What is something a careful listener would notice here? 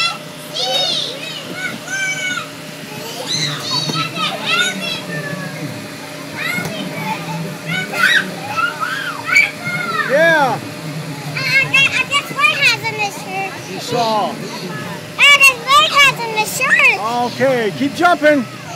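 Young children shout and squeal playfully nearby.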